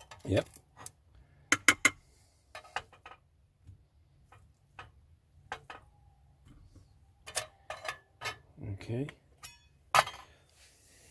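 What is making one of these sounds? Utensils clink and scrape against metal plates.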